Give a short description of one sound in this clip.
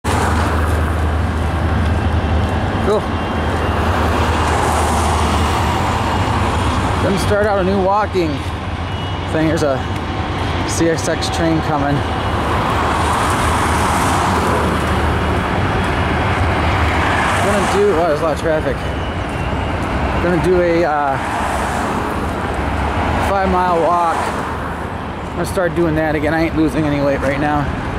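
A car engine and tyres rumble steadily on the road, heard from inside the vehicle.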